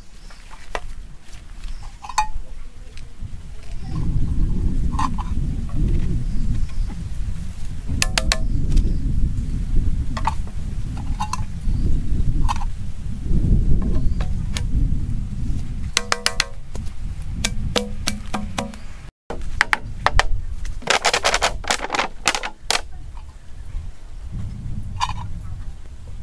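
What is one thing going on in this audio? Plastic pipes knock and click together as they are fitted.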